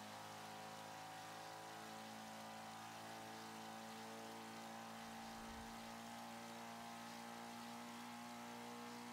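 A racing car engine hums steadily at high revs.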